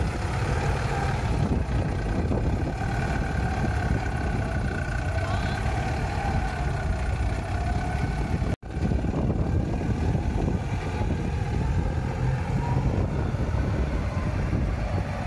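Large tyres crunch over loose dirt.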